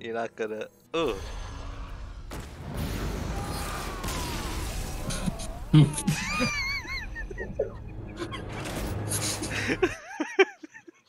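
A magical blast booms and rumbles, with sparkling chimes.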